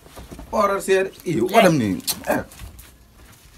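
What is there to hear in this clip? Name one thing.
A young man speaks close by, with expression.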